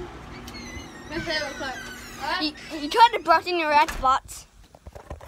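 A young boy talks and laughs excitedly close by.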